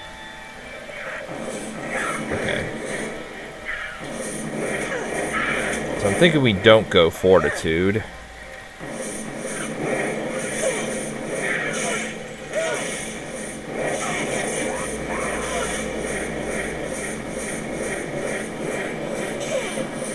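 Fire spells whoosh and crackle in rapid bursts.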